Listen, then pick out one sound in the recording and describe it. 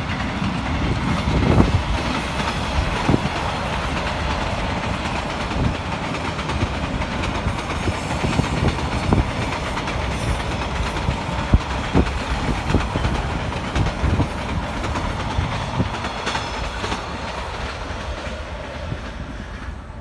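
Train wheels clack rhythmically on the rails.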